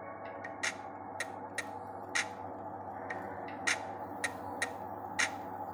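Liquid drips into a cup with sharp little splashes.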